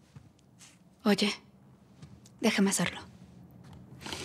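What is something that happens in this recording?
A young woman answers quietly, close by.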